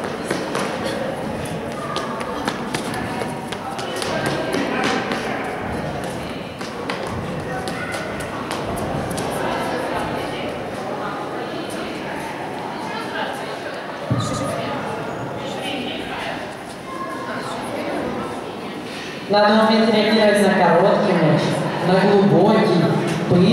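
A crowd of adults and children chatters in a large echoing hall.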